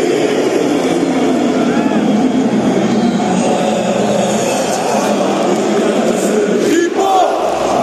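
Fans clap in time.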